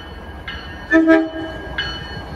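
A train horn gives a short blast.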